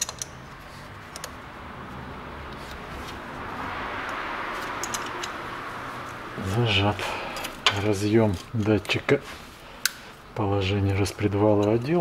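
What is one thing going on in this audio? Plastic engine parts click and rattle under working hands.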